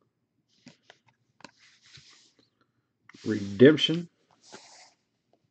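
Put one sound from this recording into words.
Trading cards rustle and click as hands handle them close by.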